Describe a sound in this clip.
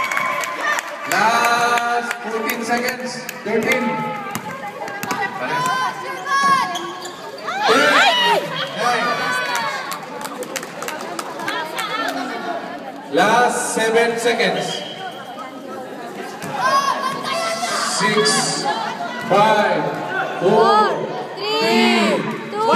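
Young people shout and call out in an echoing sports hall.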